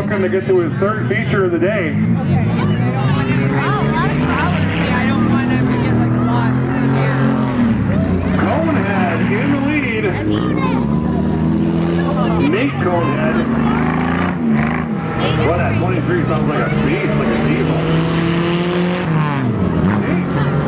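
Race car engines roar and rev as cars lap a dirt track outdoors.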